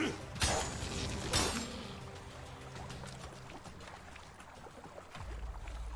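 Water splashes as a character swims.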